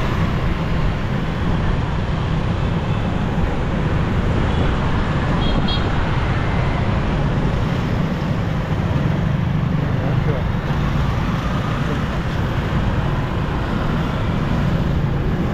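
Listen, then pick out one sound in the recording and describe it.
Wind rushes steadily past a moving rider.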